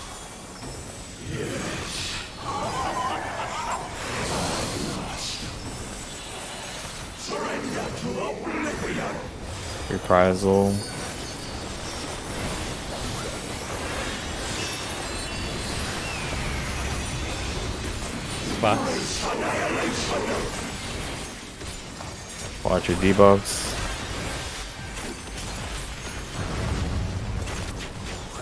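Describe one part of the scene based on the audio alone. Magic spells burst and crackle in a fierce battle.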